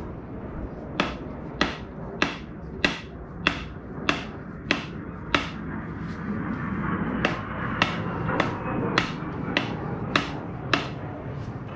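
A wooden ax handle knocks on a concrete floor in a regular rhythm.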